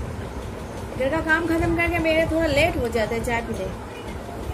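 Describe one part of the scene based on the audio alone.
A young woman speaks in a drawn-out, sing-song voice close by.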